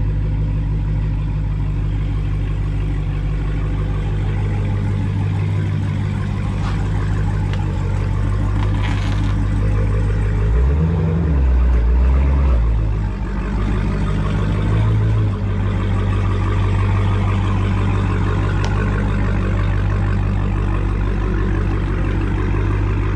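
A car engine idles with a deep, steady rumble.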